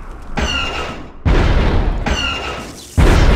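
A laser weapon fires a short zapping shot.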